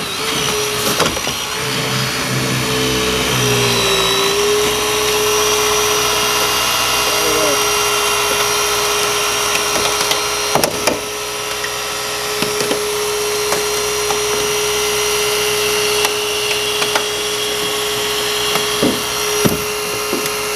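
Metal creaks and snaps sharply as a hydraulic cutter bites through a car frame.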